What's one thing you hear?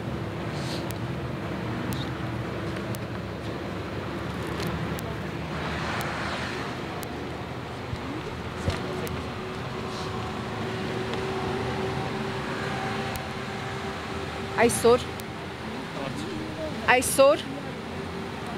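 A woman reads out through a microphone outdoors.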